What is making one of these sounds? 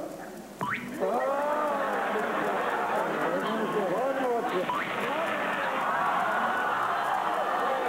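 A crowd of men and women cheers and shouts loudly.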